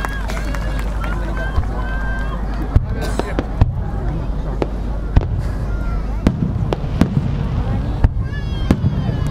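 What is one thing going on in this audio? Fireworks bang and crackle in the distance.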